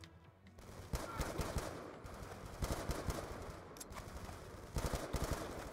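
A rifle fires in short rapid bursts.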